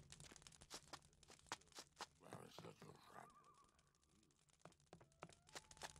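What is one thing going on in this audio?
Footsteps tap on stone and wooden boards.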